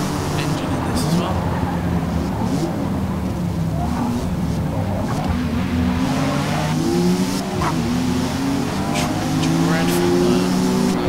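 Car tyres squeal and screech in sharp bursts.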